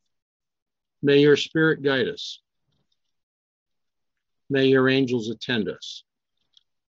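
An older man speaks calmly through an online call.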